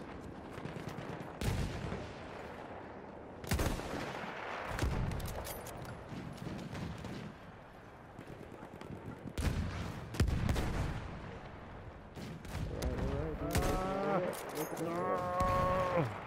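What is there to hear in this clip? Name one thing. Distant gunfire crackles on and off.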